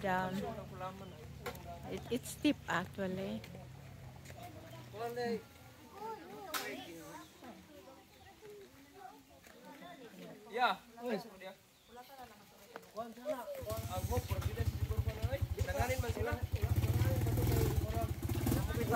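Adults and children talk nearby outdoors.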